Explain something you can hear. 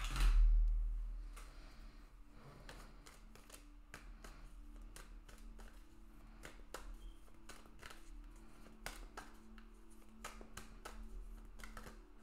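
Playing cards are shuffled by hand, with soft repeated flicks and taps.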